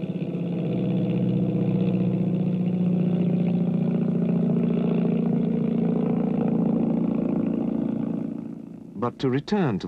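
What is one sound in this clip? Boat engines drone steadily.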